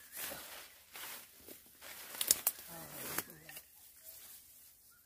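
Leaves and stems rustle as a hand pulls at plants.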